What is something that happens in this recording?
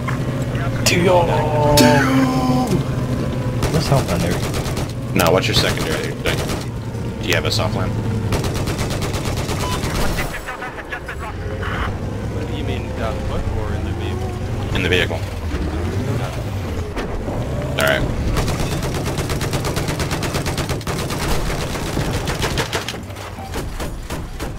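Loud explosions boom now and then.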